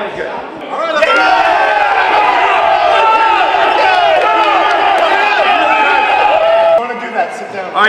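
A group of men shout and cheer loudly.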